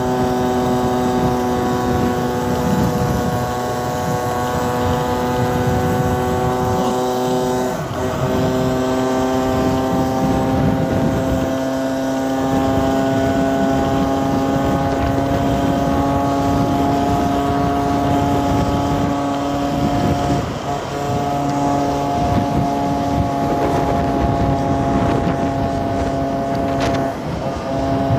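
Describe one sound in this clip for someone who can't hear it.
Wind buffets loudly against the rider in motion.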